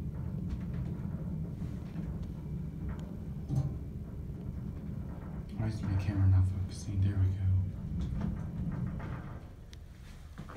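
An elevator car hums and rumbles as it moves.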